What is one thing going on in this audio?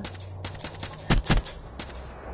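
Gunshots crack in quick bursts.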